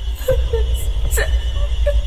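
A young woman sobs.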